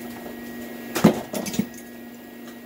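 Metal tools clink and clatter against an engine part.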